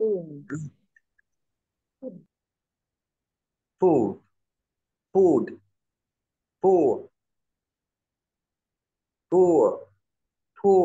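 A young man pronounces short words one at a time over an online call, with pauses between them.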